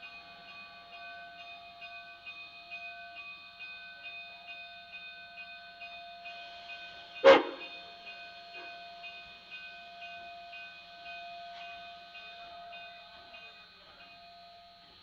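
A steam locomotive puffs steadily in the distance.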